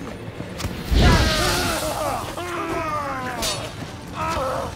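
Swords clash in a fight.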